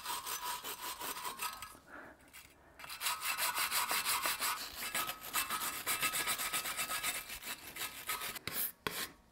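A wire brush scrubs rapidly against metal.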